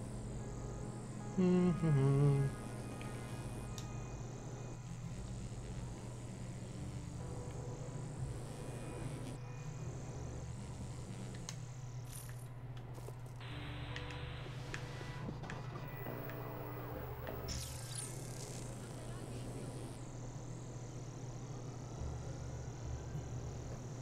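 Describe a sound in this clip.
Electronic game effects whoosh and crackle.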